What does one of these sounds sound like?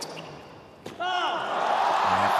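A crowd cheers and applauds loudly.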